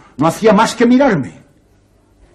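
A man speaks loudly and forcefully.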